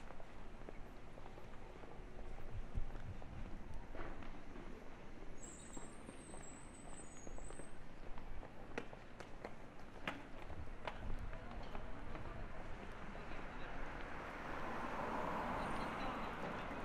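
Faint street noise and distant chatter fill the air outdoors.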